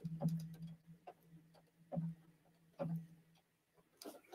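A sewing machine hums in short bursts.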